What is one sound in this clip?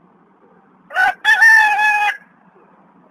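A crow caws loudly.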